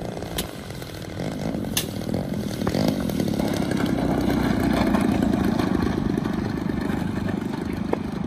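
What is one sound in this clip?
A model airplane engine buzzes loudly and grows louder as it comes closer.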